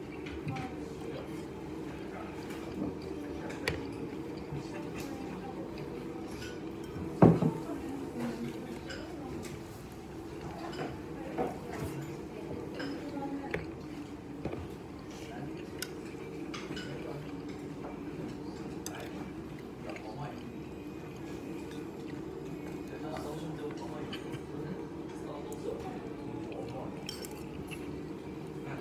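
A man slurps and chews food.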